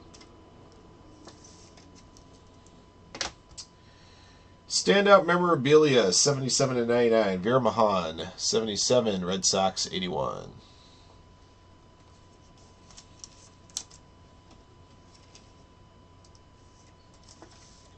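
A plastic card sleeve rustles and crinkles in hands.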